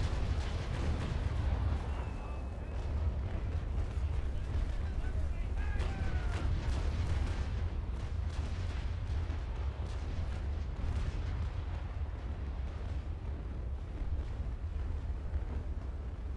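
Wind roars steadily over the open sea.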